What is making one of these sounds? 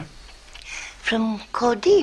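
An elderly woman speaks softly nearby.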